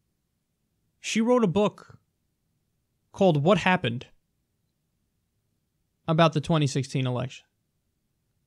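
A young man speaks calmly and closely into a microphone, with pauses.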